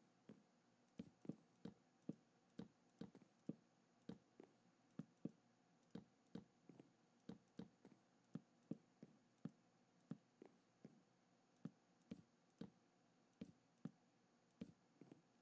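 Wooden blocks thud softly into place, one after another.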